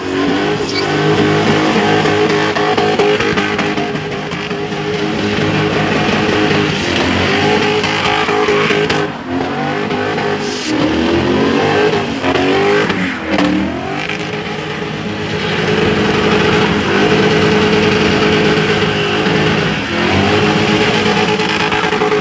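Tyres screech and squeal on the tarmac while spinning.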